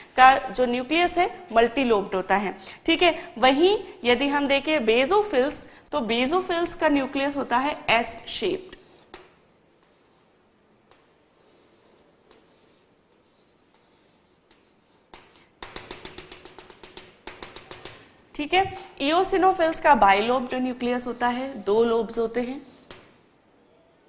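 A young woman speaks calmly and clearly, close by, as if lecturing.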